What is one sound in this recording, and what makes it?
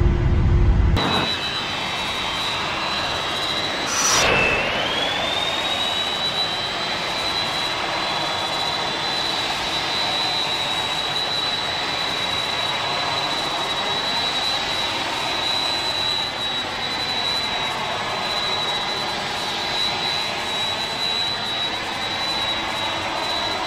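Jet engines whine steadily at idle.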